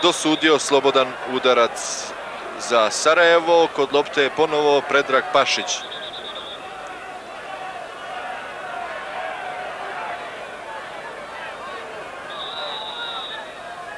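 A stadium crowd murmurs in the distance.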